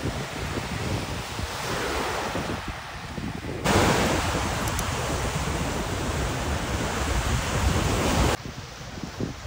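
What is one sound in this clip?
Small waves wash onto a sandy shore.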